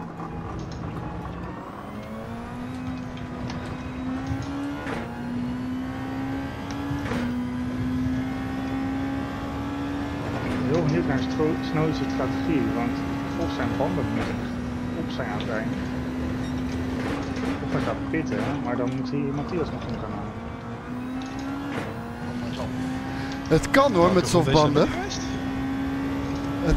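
A racing car engine revs hard and climbs through the gears.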